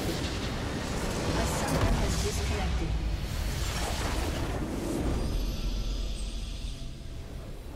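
A large structure explodes with a deep rumbling blast.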